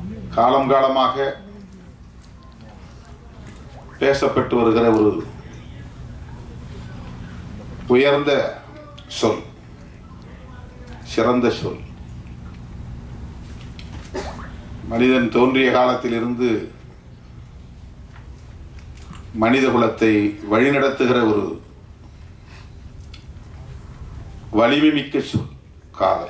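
A middle-aged man speaks slowly into a microphone over a loudspeaker, pausing between phrases.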